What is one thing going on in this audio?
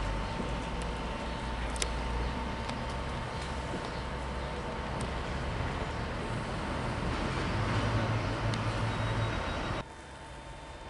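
An electric train rumbles slowly along the track with a steady hum.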